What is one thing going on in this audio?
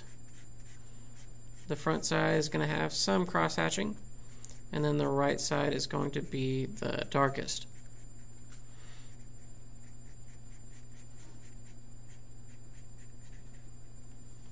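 A marker scratches and squeaks across paper in quick strokes.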